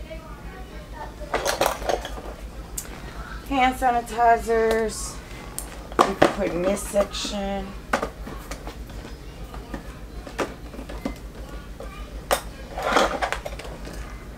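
Plastic items rattle and click inside a case.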